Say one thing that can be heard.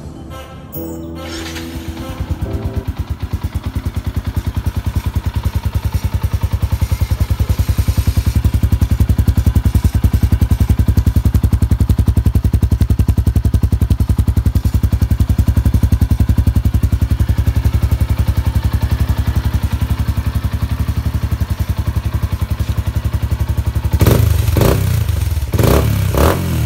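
A motorcycle engine idles with a deep, throbbing exhaust note.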